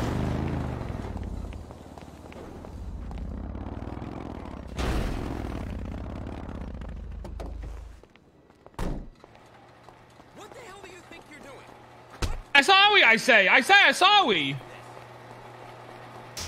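Footsteps patter on a concrete floor.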